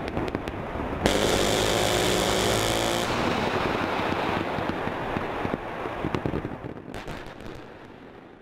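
Explosions boom and rumble across hills outdoors.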